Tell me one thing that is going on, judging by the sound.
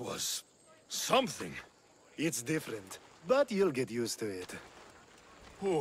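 A second man answers in a relaxed, drawling voice.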